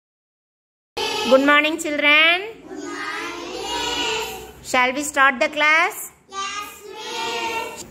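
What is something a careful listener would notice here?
Young children speak together in a loud chorus, close by.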